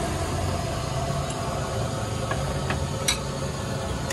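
Ceramic bowls clink as they are set down.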